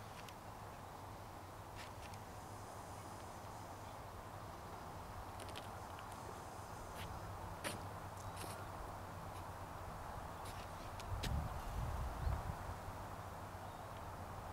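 A jet engine roars steadily far overhead.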